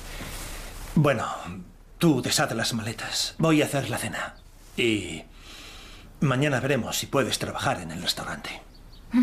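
A man speaks earnestly and with feeling, close by.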